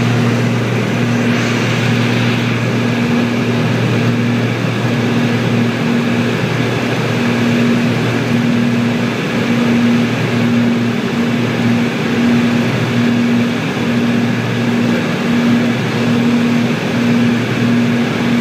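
Rain patters against a plane's windscreen.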